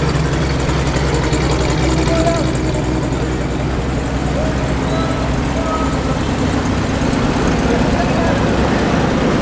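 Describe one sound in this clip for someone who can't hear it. Old engines rumble steadily as a column of vehicles drives slowly past close by.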